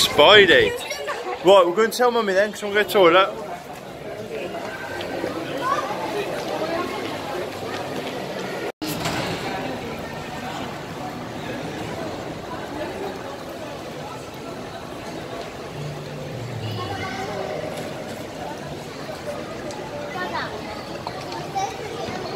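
Many people chatter in a large echoing hall.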